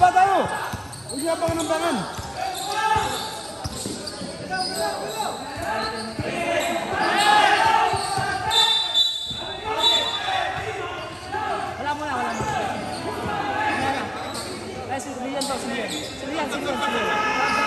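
Many voices shout and cheer in a large echoing hall.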